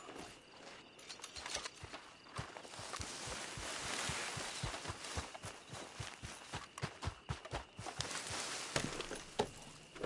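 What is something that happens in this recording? A horse's hooves thud steadily on the ground at a trot.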